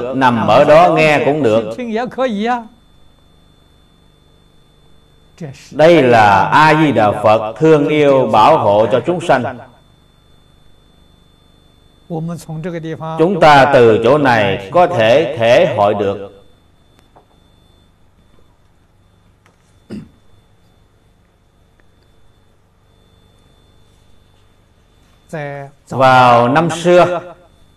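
An elderly man speaks calmly and warmly into a close microphone, with pauses between phrases.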